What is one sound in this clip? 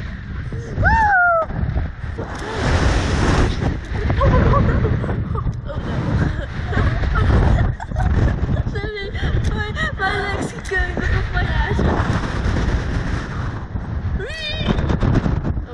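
A girl laughs and shrieks with excitement close by.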